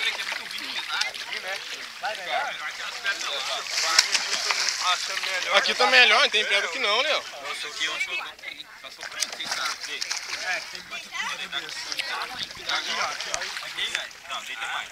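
Young men talk and shout with animation close by, outdoors.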